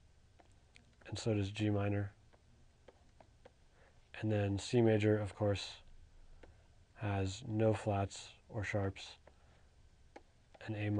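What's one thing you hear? A man speaks calmly and clearly into a microphone, in short phrases with pauses.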